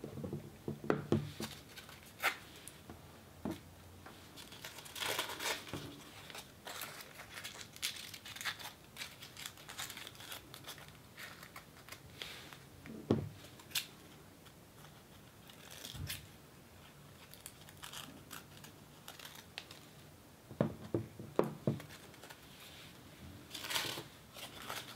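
Crepe paper crinkles and rustles close up.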